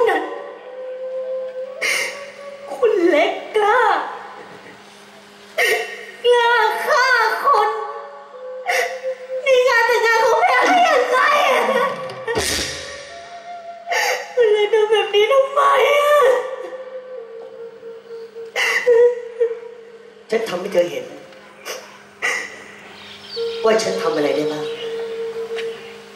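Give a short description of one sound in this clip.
A young woman speaks with emotion, almost singing, through a microphone in a large hall.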